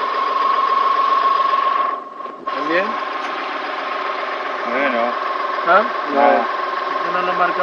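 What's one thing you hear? A car engine idles steadily nearby.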